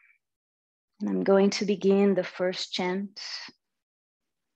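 A young woman speaks calmly and softly into a microphone.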